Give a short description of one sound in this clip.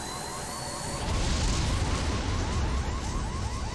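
Electric sparks crackle and burst.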